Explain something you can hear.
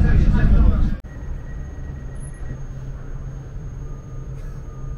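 A train hums quietly while it stands at a platform.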